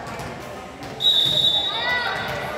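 A referee's whistle blows once in a large echoing gym.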